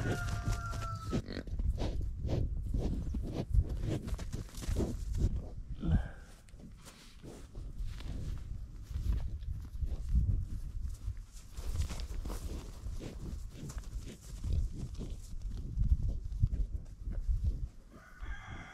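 Bison hooves thud and crunch on dry grass.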